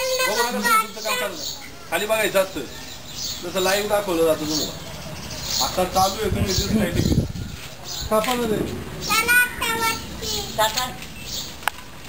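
An elderly man talks nearby.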